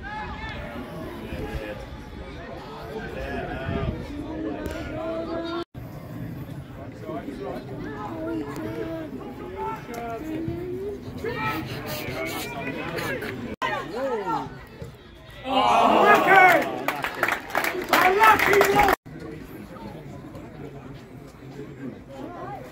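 A crowd of spectators talks and calls out outdoors.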